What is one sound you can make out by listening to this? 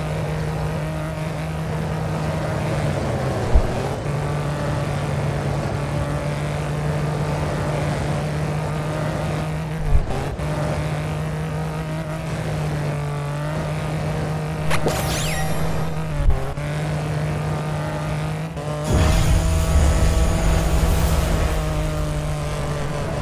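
Tyres skid and scrape on loose dirt.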